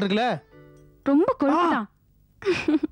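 A woman speaks sharply and with emotion, close by.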